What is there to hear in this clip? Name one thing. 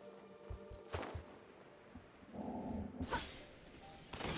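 A sharp magical zap crackles.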